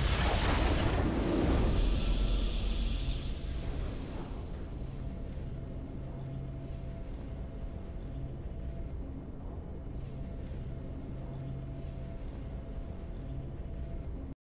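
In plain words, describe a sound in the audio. A triumphant victory fanfare plays, then settles into calm music.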